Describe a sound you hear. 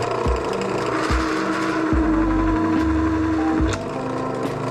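A drill bit grinds into metal with a whine.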